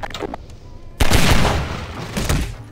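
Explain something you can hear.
A pistol fires a loud shot.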